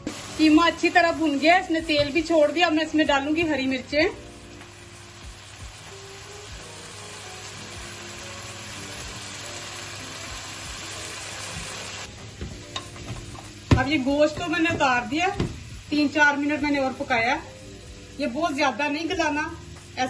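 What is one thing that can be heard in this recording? A wooden spoon scrapes and stirs in a metal pan.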